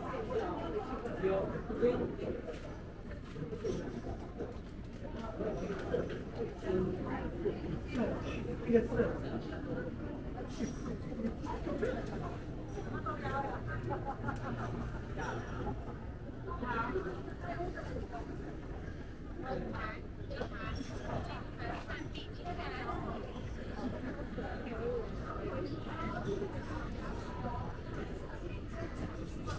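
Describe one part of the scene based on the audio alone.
A crowd of men and women chatters all around.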